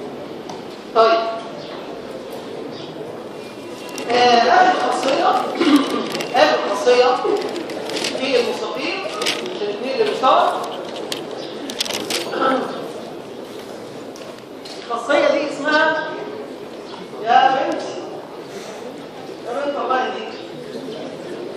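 A man lectures calmly in a large echoing hall, his voice carried by a loudspeaker.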